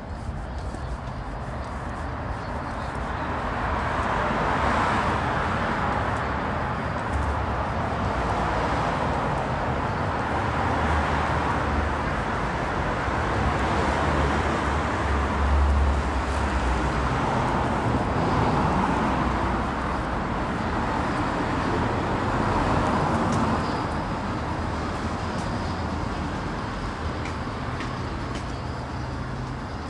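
Cars drive past on a city street.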